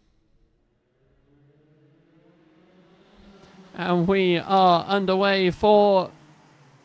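A pack of kart engines drones closer and grows louder.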